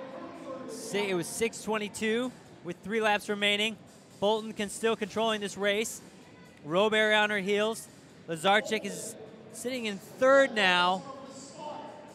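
A crowd cheers and whoops loudly in a large echoing hall.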